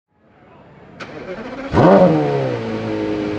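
A Porsche Carrera GT's V10 engine starts up with a sharp bark.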